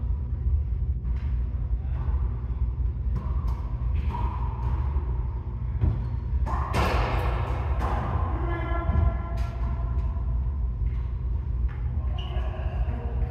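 A small rubber ball smacks off walls and rackets with sharp echoing pops.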